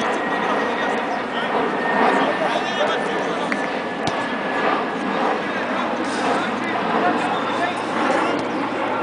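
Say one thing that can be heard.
A crowd of onlookers chatters steadily outdoors.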